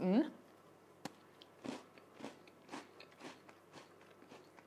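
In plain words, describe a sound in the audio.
A young woman crunches a crisp biscuit while chewing.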